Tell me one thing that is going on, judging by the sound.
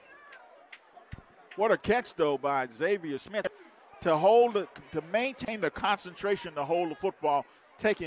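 A crowd cheers and shouts in an open stadium.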